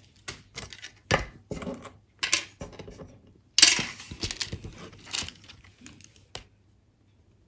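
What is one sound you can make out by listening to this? A plastic sheet crinkles and rustles as it is handled.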